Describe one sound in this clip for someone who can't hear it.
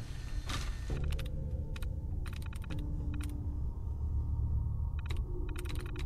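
A computer terminal chatters with quick clicks as text prints.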